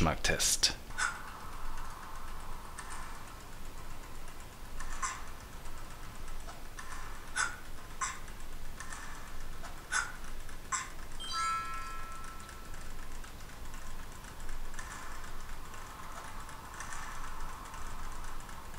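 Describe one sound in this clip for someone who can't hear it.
A phone game plays short sound effects through a small speaker.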